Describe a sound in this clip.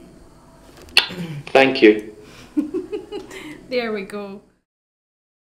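A young woman laughs brightly close by.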